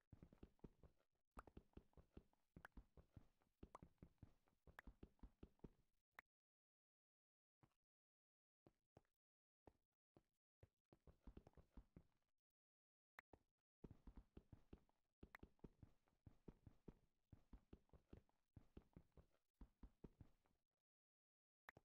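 A pickaxe chips rapidly at stone blocks.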